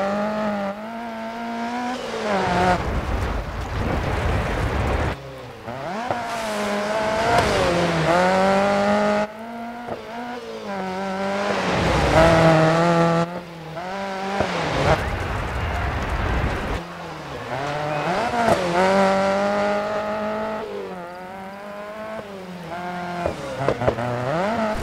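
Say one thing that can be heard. A rally car engine revs hard and shifts gears, rising and falling in pitch.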